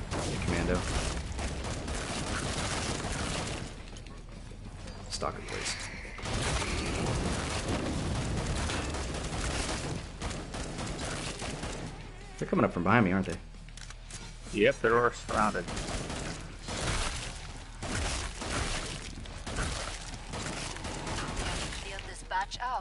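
An assault rifle fires rapid bursts of gunshots.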